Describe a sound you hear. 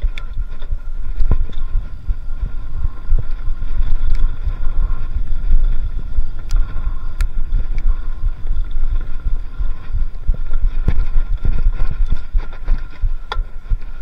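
Wind rumbles loudly across a microphone on a moving bicycle.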